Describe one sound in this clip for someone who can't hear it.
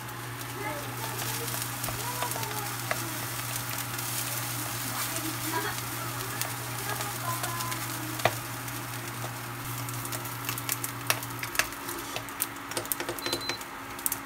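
A spatula scrapes against a frying pan.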